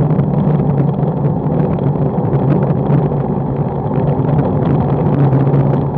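A motorcycle engine hums steadily at low revs.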